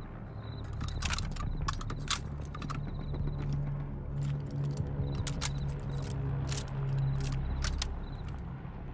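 Metal clicks and rattles as a weapon is reloaded.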